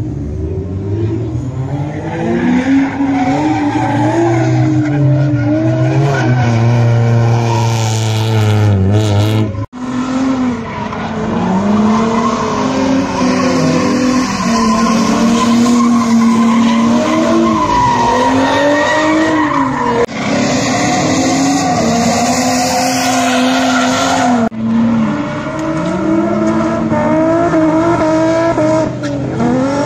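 A car engine revs hard as it drifts.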